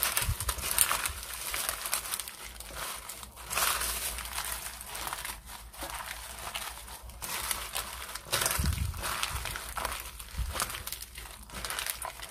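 Wet food squelches and slaps as it is mixed by hand.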